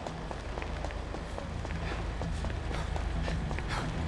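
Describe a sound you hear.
A car engine hums as a car drives past.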